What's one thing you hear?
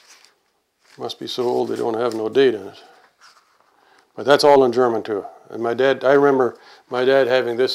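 An elderly man reads aloud calmly into a close microphone.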